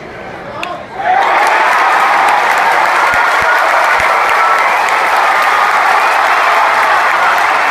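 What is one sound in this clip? A large stadium crowd suddenly erupts into loud cheering.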